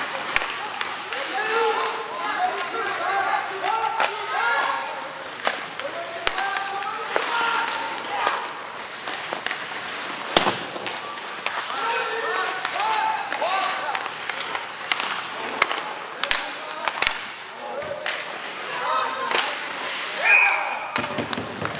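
Spectators near the rink talk and call out.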